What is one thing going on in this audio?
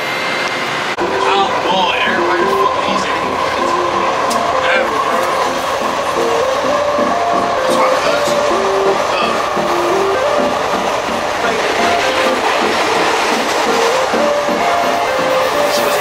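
A train rumbles steadily along its tracks.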